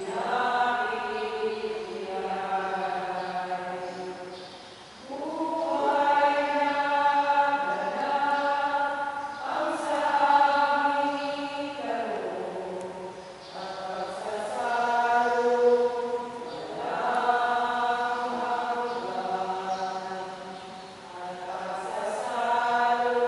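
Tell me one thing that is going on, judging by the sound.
A man chants slowly in long held notes through a loudspeaker in an echoing hall.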